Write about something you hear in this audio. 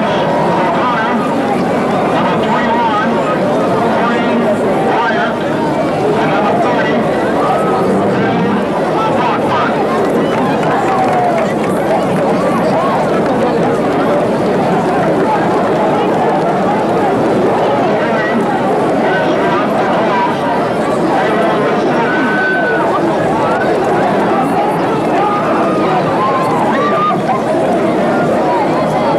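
A large crowd chatters and murmurs loudly throughout.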